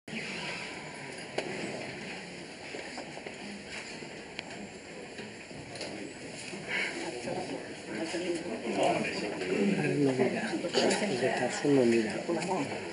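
A man speaks clearly through a microphone, his voice heard over a loudspeaker.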